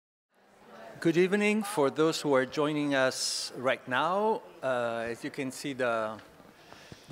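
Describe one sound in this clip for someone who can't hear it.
A man speaks calmly into a microphone through a loudspeaker in a large hall.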